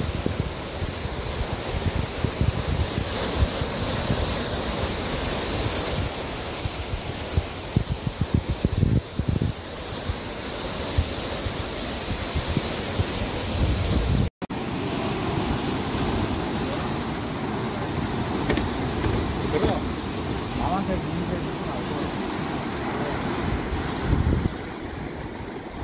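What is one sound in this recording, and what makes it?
Waves crash and wash over rocks close by, roaring steadily.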